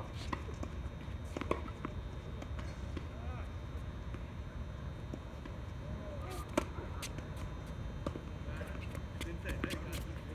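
Tennis balls are struck with rackets with sharp pops.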